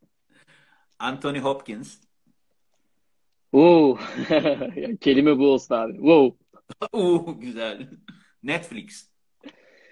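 A young man laughs over an online call.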